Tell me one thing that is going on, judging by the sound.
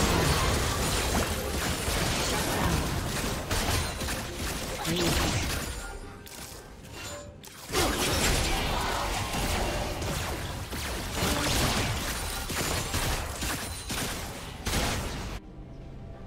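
Game spell effects whoosh, clash and explode during a fight.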